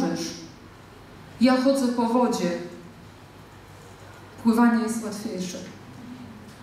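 A woman speaks through a microphone in a large echoing hall, in short phrases with pauses.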